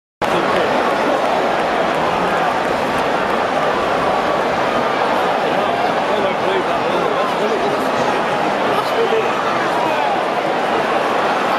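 A large stadium crowd chants and murmurs steadily.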